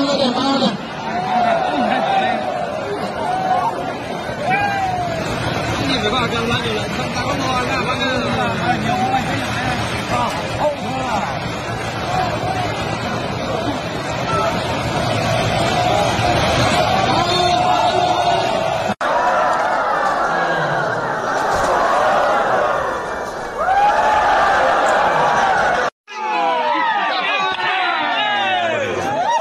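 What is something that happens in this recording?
Men shout excitedly nearby.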